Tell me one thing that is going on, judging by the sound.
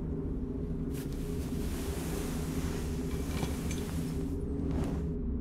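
Heavy cloth rustles and slides as it is pulled away.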